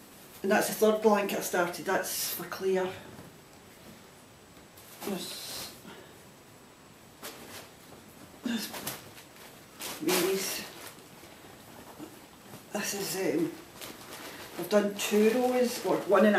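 A cloth bag rustles as it is handled.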